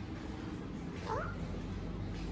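A parrot gives a short, rising chirp close by.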